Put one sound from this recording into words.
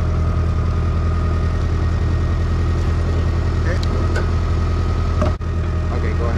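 A log splitter's engine runs with a steady low drone.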